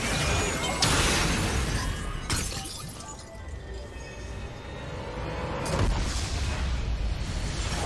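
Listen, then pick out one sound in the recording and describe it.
Spell effects crackle and burst in a game battle.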